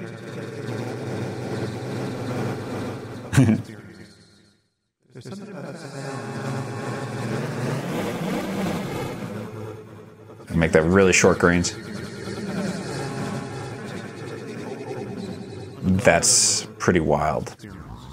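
An electronic synthesizer drones with shifting, wavering tones.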